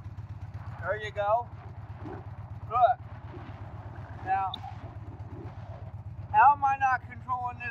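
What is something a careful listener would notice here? An older man talks animatedly close to the microphone.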